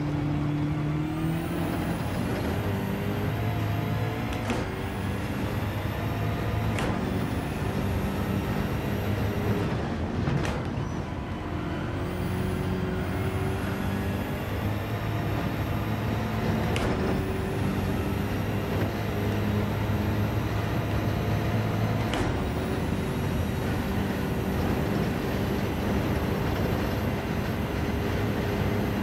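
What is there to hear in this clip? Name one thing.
Tyres hum and rumble on the track.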